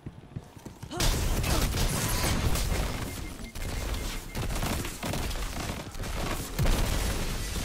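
An explosion booms with a crackling burst of energy.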